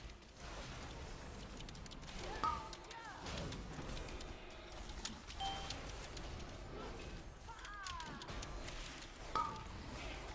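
Magic spells crackle and whoosh in a fantasy battle.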